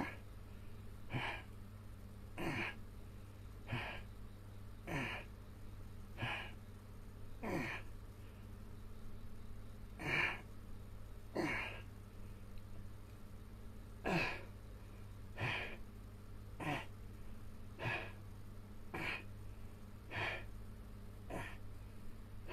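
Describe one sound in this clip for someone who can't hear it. A man grunts with effort again and again, close by.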